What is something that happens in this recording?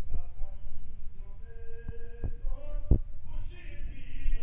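A man chants in a melodic voice through a microphone.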